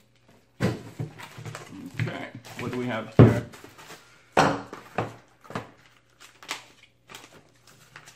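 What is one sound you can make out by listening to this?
Plastic wrapping crinkles as it is torn open.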